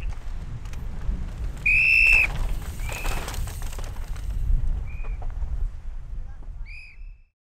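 Bike tyres rumble and crunch over rough rock.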